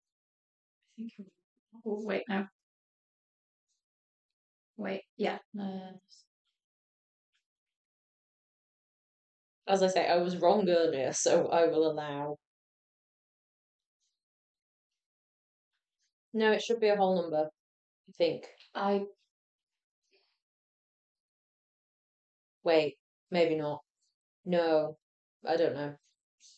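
A young woman speaks calmly nearby in short bursts.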